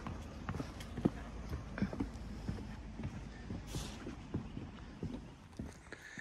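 Footsteps thud on a wooden boardwalk.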